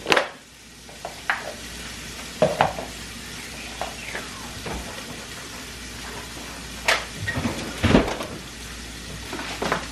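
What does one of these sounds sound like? A knife chops on a cutting board with sharp knocks.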